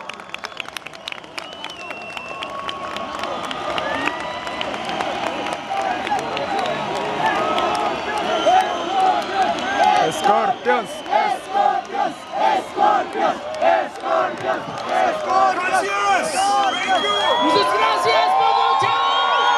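Band music plays loudly through big loudspeakers.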